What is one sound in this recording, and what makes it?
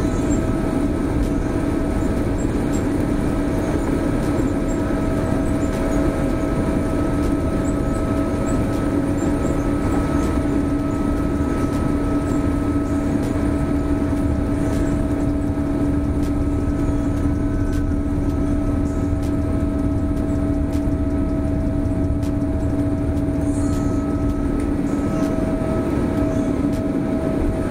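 The plane rumbles along the runway.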